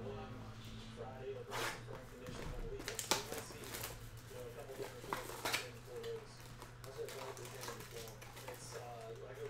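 Hands tear open a cardboard box.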